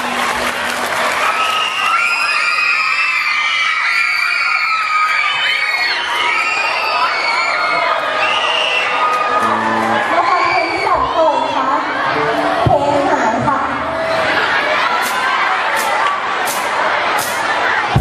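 A large crowd of children chatters and cheers loudly in a big echoing space.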